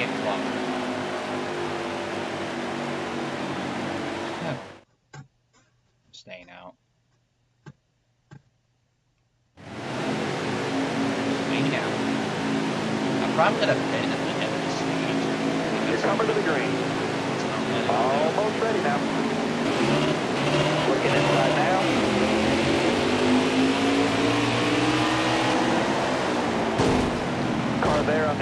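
Race car engines roar steadily at high speed.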